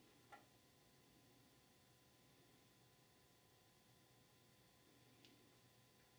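A small metal part clinks against an aluminium transmission case.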